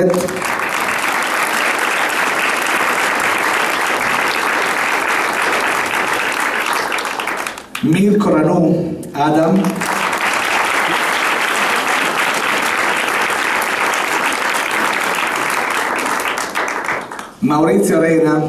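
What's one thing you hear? A crowd applauds loudly and steadily.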